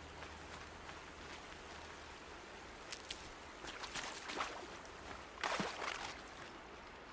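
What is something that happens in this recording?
Water splashes as someone wades through a stream.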